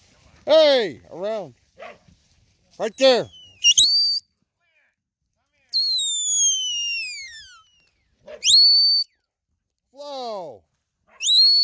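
A dog barks sharply, close by.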